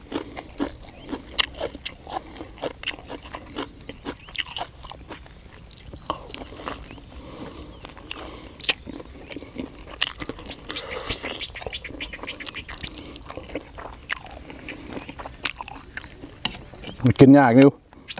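A man chews and slurps food loudly and close by.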